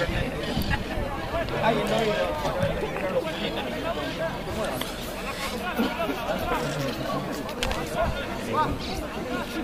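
Rugby players shout to each other across an open field.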